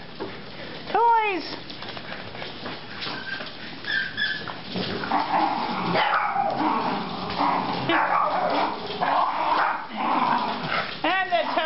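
A small dog yelps sharply.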